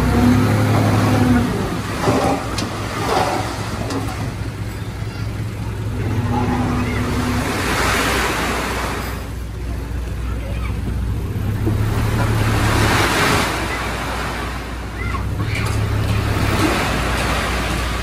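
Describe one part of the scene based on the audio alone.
Dirt and gravel pour and slide out of a truck bed with a rushing sound.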